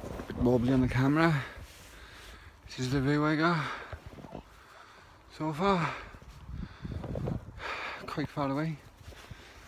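A young man talks close to a phone's microphone outdoors, in short bursts.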